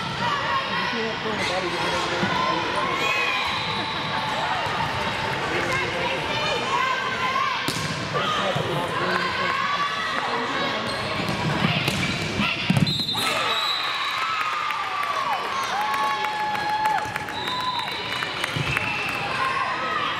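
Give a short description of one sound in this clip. Sneakers squeak sharply on a hard court, echoing in a large hall.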